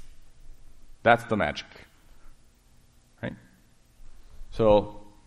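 A middle-aged man speaks in short bursts to an audience in a room with a slight echo.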